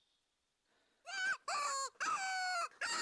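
A hand-held animal call is blown in short, rising honks.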